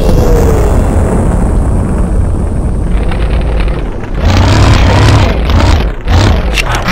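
A tracked tank's engine rumbles low in a video game.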